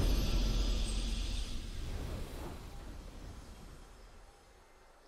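A triumphant game fanfare rings out and slowly fades away.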